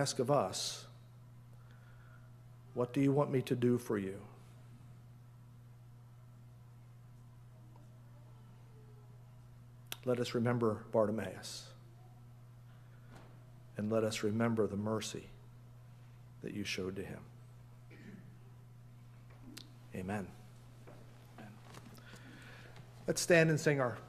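An elderly man speaks calmly through a microphone, with long pauses.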